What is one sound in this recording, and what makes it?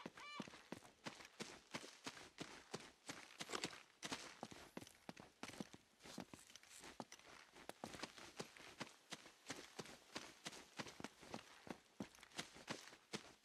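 Quick footsteps run over soft ground and stone.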